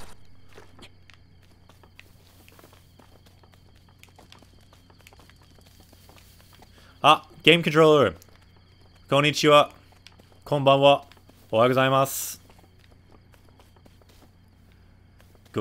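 Footsteps run softly through grass.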